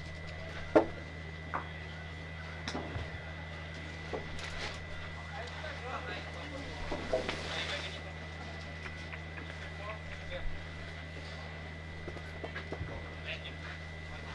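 Metal boules knock and clack on a gravel court.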